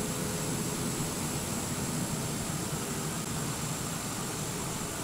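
An aircraft engine whines steadily at idle.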